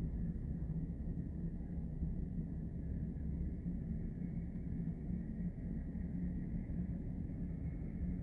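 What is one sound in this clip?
A waterfall roars steadily in the distance.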